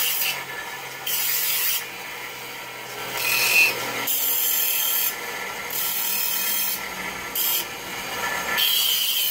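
A knife blade grinds against a spinning wheel in short bursts of hissing scrapes.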